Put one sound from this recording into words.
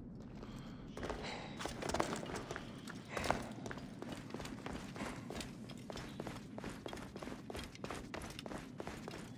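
Footsteps crunch quickly on rocky ground.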